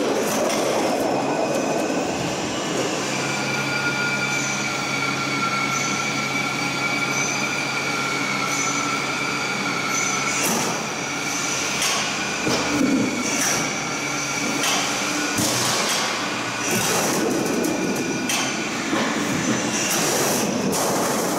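A metal roll-forming machine hums and clatters steadily.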